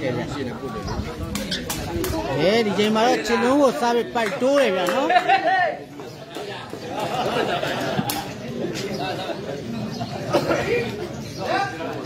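A crowd of spectators chatters and calls out nearby, outdoors.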